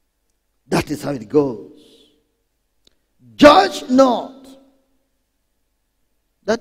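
A man preaches with animation through a microphone, in short bursts with pauses.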